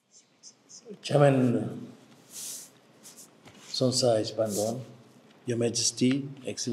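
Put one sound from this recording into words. A man speaks calmly and formally into a microphone.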